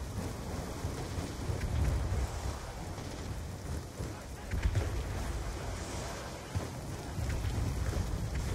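A strong wind rumbles and howls steadily outdoors.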